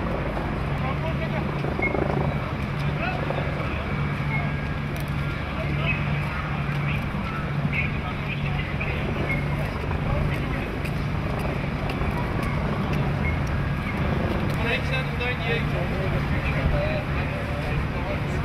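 Several men talk among themselves outdoors.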